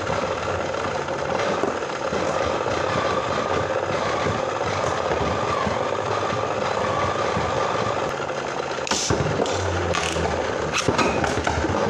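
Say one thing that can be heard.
Spinning tops whir steadily in a plastic arena.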